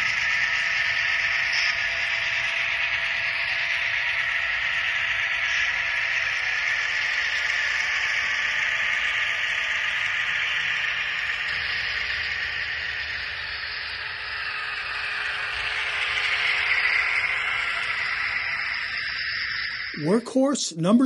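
A model diesel locomotive hums and rumbles steadily along the track.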